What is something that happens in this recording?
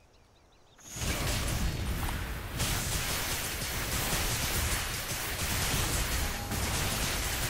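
Magic blasts crackle and boom in a fast fight.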